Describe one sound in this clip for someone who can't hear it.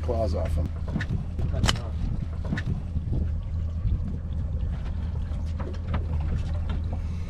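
Wind buffets steadily outdoors on open water.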